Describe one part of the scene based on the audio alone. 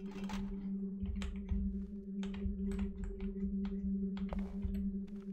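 Footsteps thud steadily on a stone floor in an echoing hall.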